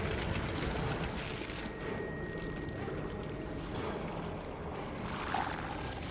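Footsteps run across stone.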